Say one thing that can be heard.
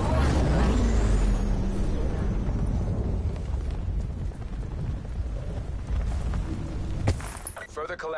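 Wind rushes loudly past during a fast fall through the air.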